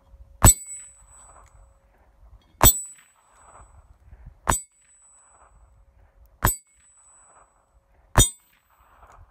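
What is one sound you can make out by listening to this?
Gunshots crack sharply five times.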